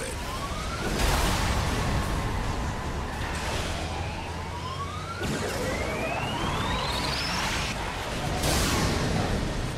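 A vehicle gun fires bursts.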